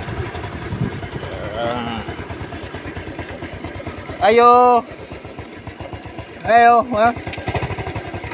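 A motor scooter engine putters at idle close by.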